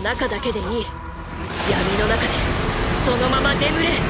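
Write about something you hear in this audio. A huge beast roars loudly in a burst of noise.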